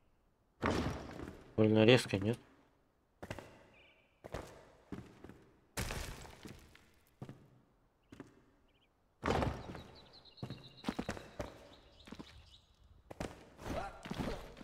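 Stone blocks thud heavily into place, one after another.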